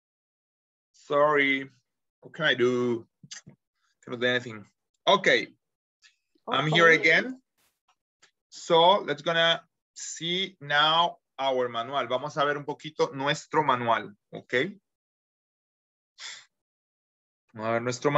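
A man talks with animation over an online call, in bursts with pauses.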